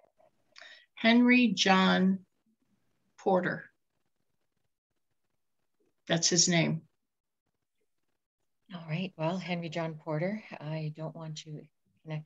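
A woman speaks with animation over an online call, in short bursts with pauses.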